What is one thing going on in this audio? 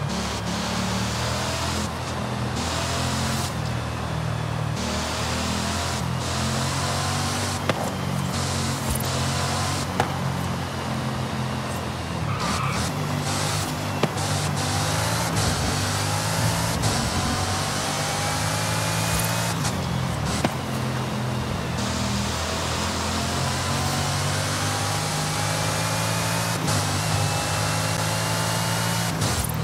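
Tyres hiss on the road at speed.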